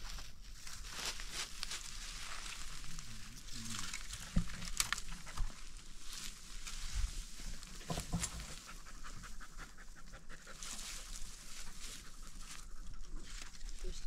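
Dry grass and leaves rustle and crackle as a dog moves about.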